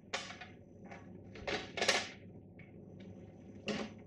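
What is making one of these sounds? A plastic cover snaps into place.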